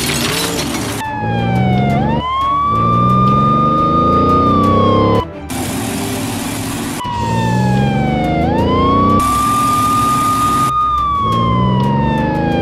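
A police siren wails and dips in pitch.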